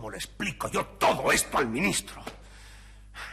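A man speaks with strong emotion, close by.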